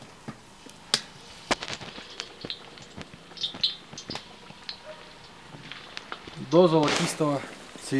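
Potatoes plop into a pot of water.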